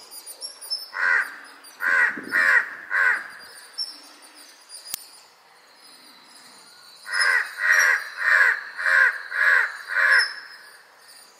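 A large-billed crow gives a series of harsh caws.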